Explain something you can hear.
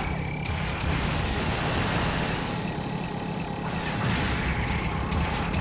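A robot's thrusters roar as it boosts along.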